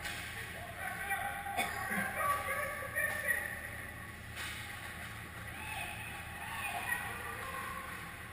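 Young players shout to each other across a large echoing rink.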